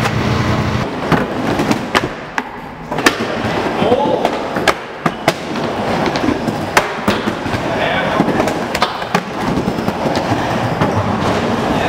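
Skateboard wheels roll and rumble across a wooden bowl.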